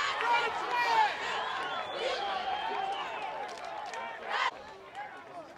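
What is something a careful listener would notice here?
Several young men shout and cheer excitedly outdoors.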